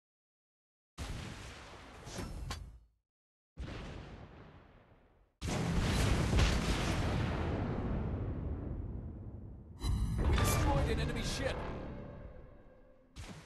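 Heavy guns fire in loud booming blasts that rumble and slowly fade.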